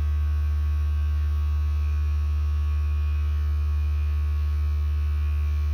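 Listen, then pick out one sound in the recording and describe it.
A heat press hums steadily.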